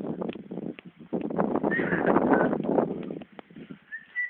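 A bicycle rattles past close by.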